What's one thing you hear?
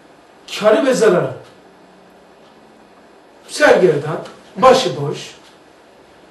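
An elderly man speaks calmly and clearly, close by, in short phrases with pauses.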